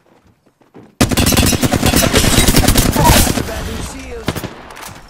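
A gun fires in a rapid, loud burst.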